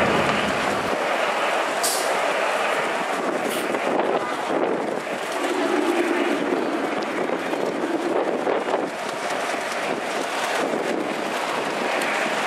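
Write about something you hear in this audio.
A city bus engine idles and hums nearby.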